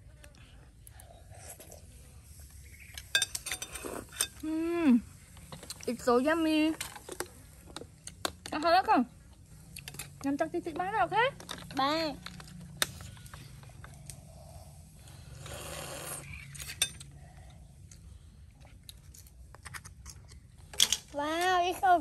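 A spoon clinks against a shell.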